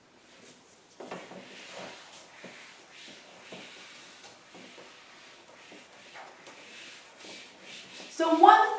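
An eraser rubs and squeaks across a whiteboard.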